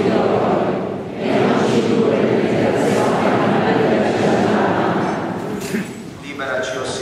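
A choir of men sings together, echoing in a large hall.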